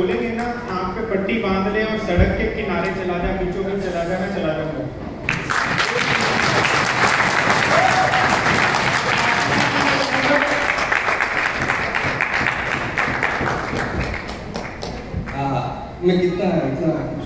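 A man speaks with animation through a loudspeaker in a large hall.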